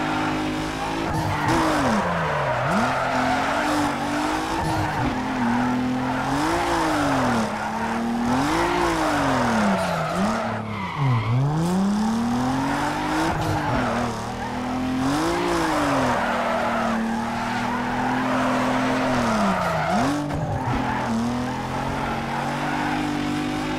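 A car engine revs up and down as the car drifts.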